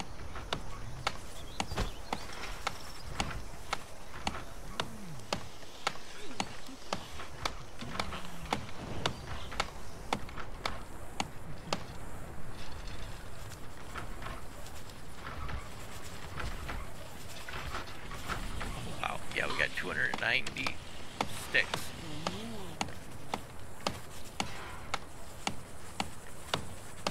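Tools tap and knock in quick, regular strokes.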